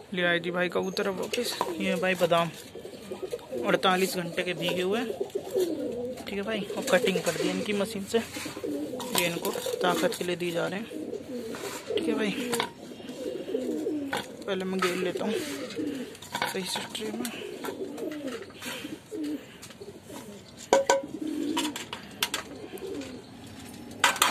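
Pigeons coo steadily nearby.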